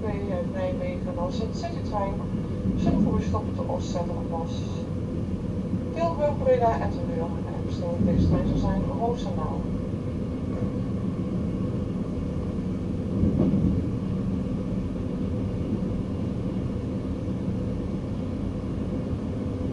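Train wheels thump over rail joints.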